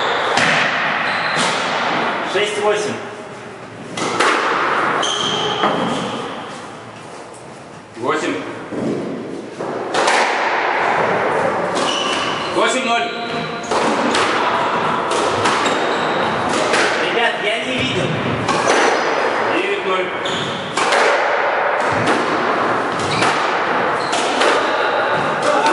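A squash ball smacks off rackets and walls with sharp, echoing cracks.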